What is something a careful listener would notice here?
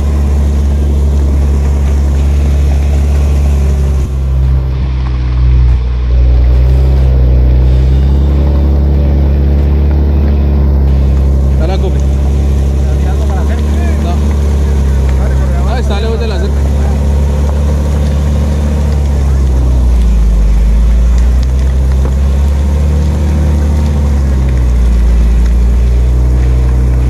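A vehicle's engine rumbles loudly and steadily close by.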